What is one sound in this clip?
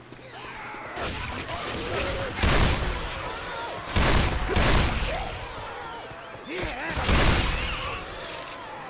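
A revolver fires loud, echoing shots.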